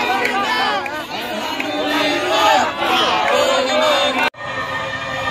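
A close crowd of men and women shout and talk excitedly.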